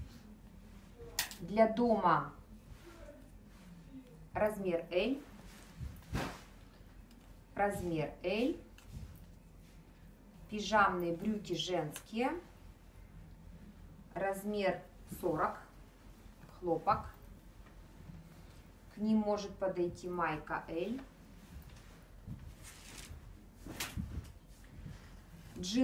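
Clothes rustle softly as they are handled and folded.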